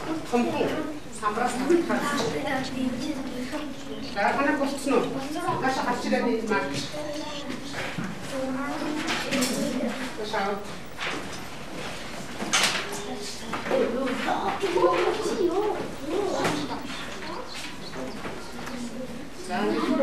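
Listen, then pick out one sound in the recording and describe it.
Children's voices murmur and chatter nearby.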